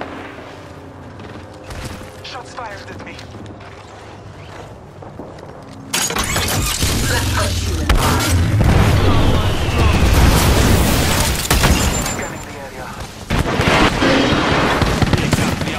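Footsteps run over dirt and metal.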